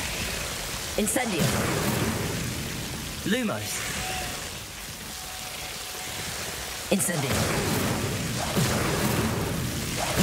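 A magic spell bursts with a crackling whoosh.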